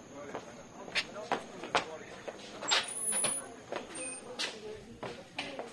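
A door creaks and knocks as it is pushed open.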